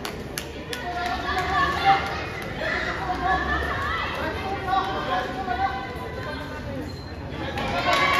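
A crowd of spectators shouts and cheers nearby.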